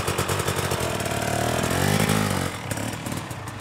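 A dirt bike engine revs up sharply.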